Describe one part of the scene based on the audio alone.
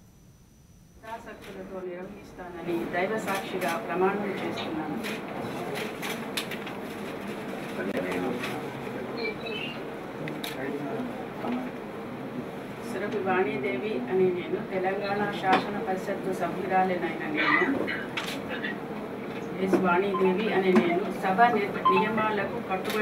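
A middle-aged woman reads aloud steadily into a microphone.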